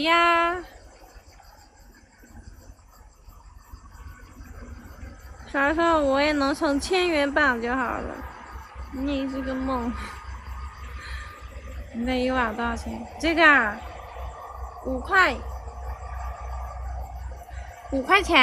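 A young woman speaks close by in a lively, sing-song way.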